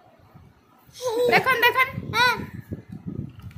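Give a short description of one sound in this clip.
A toddler squeals and laughs close by.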